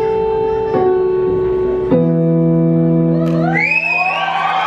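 A keyboard plays a few sustained electronic notes.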